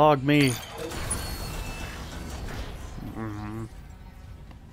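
A heavy metal door slides open with a mechanical whoosh.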